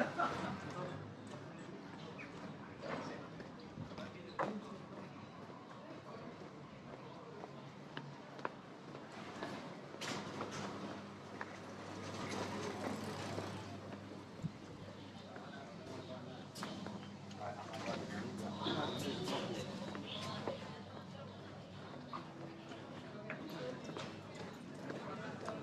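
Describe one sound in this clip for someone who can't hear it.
Distant voices murmur along a quiet street outdoors.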